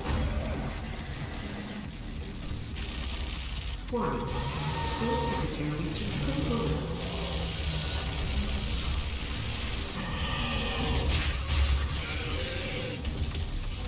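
Energy guns fire rapid zapping shots.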